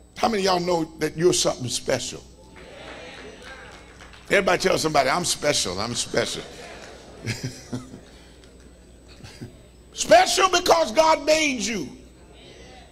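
An elderly man preaches with animation into a microphone.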